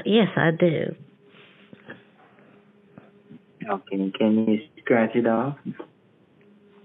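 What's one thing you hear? An elderly woman speaks with animation over a phone line.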